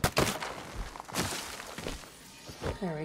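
Wood cracks and thuds as something is smashed apart.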